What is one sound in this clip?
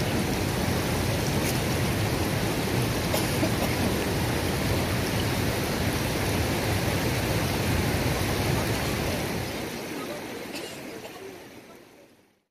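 A shallow river ripples and gurgles steadily over stones, then fades away.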